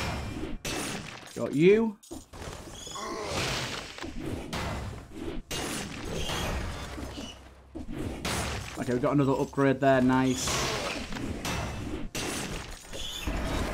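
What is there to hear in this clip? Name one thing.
Blades slash and strike in quick bursts of combat.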